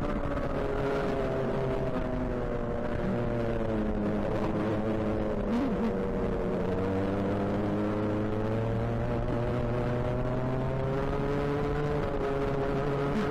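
A go-kart engine buzzes loudly up close, its pitch rising and falling with speed.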